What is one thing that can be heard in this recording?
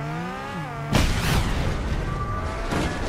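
A car crashes and tumbles with a loud bang.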